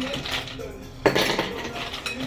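Ice cubes clink into a glass.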